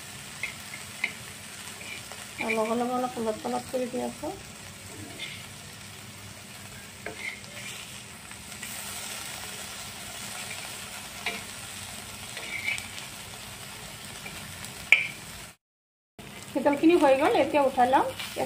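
A metal spatula scrapes and taps against a hot pan.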